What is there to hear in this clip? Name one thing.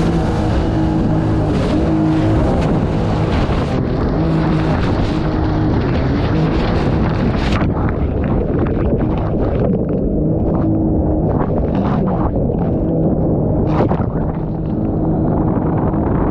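A jet boat engine drones loudly and steadily.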